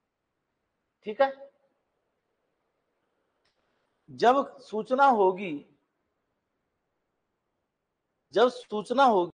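A middle-aged man speaks calmly into a microphone in short bursts, with pauses between.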